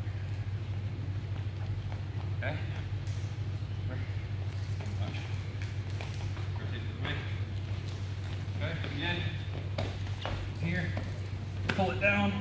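Bodies thump and shuffle on a wrestling mat.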